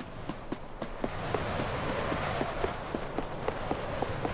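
Magic swirls of wind whoosh and hiss.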